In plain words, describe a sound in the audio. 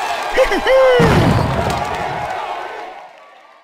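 A heavy boom sounds.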